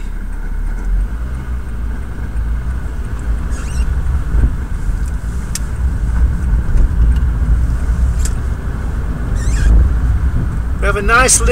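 A car engine rumbles louder as the car pulls away.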